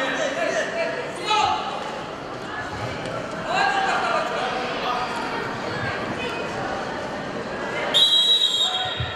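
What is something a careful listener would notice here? A crowd of children and adults chatters and calls out in a large echoing hall.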